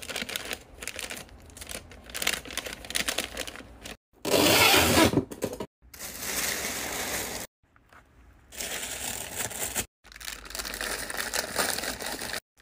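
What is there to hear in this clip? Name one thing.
Crinkly paper rustles as it is folded and handled.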